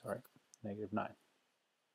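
Calculator buttons click under a finger.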